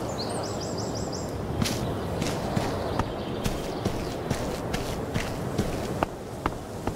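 Footsteps tap on pavement at a walking pace.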